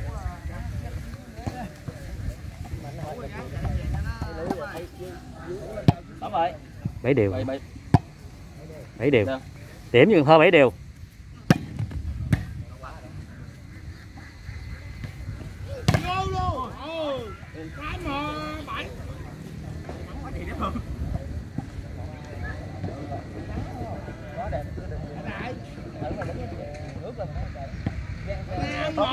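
A crowd of young men chatters and shouts outdoors.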